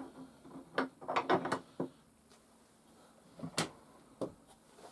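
A wooden drawer slides shut with a knock.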